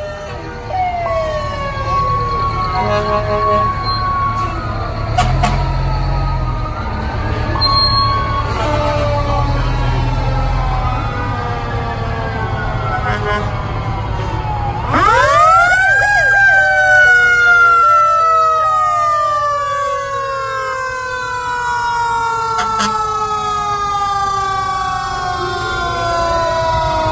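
Several sirens wail and rise and fall along the road.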